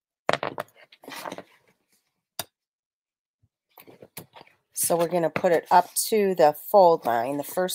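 Paper rustles softly as hands smooth and fold it.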